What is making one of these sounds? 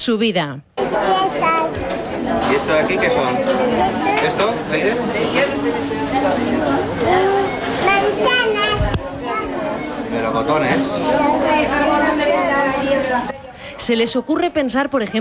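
Small children chatter and babble close by.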